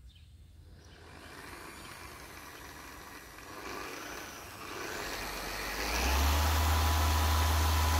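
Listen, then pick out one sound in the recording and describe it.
An electric polisher whirs and builds to a loud steady hum.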